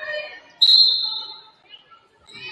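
A referee's whistle blows one short, sharp blast.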